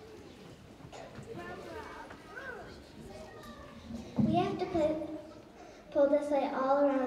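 A young girl speaks clearly into a microphone, heard through loudspeakers.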